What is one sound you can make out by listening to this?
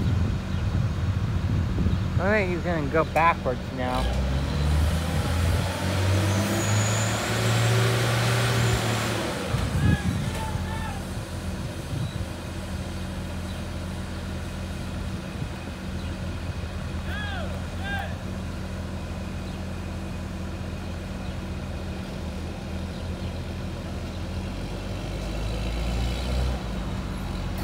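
A diesel railcar mover's engine rumbles as it pushes hopper cars.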